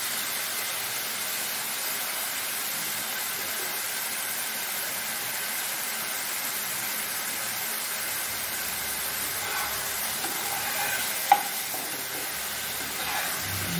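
Mushrooms sizzle steadily in a hot pan.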